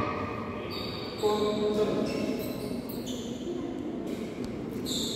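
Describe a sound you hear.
A racket hits a shuttlecock with a light pop.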